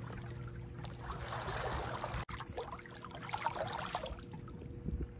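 Water splashes as a man swims.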